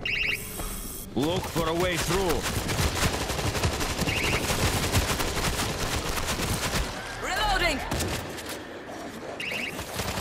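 Automatic gunfire rattles rapidly and loudly.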